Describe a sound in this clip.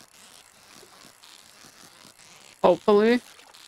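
A video game fishing reel whirs softly.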